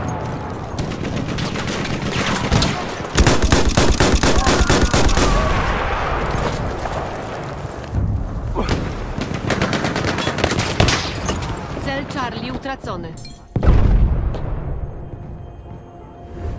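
Rapid gunfire crackles and rattles.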